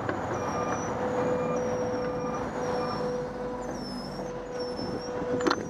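A bus passes close by.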